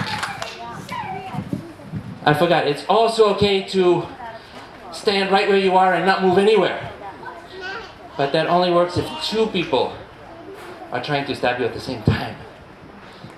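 A man speaks loudly into a microphone, heard through a loudspeaker outdoors.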